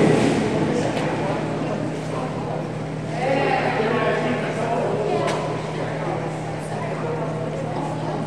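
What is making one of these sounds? A swimmer splashes while swimming to the side of the pool.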